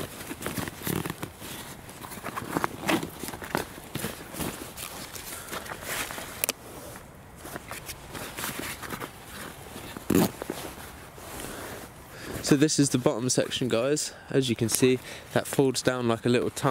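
Fabric of a backpack rustles and scrapes as hands rummage through it.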